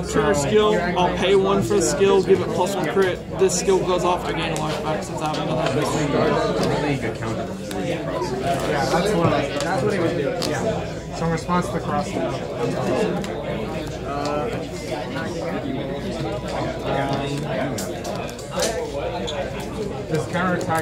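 Playing cards are softly placed and slid across a cloth mat.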